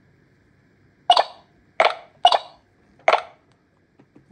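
A tablet game plays a few short alert chimes.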